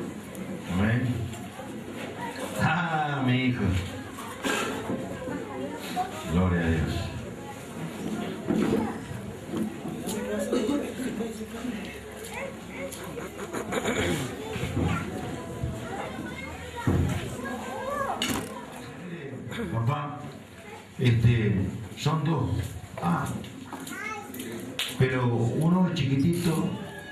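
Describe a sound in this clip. A middle-aged man speaks with animation through a microphone and loudspeakers in a room with an echo.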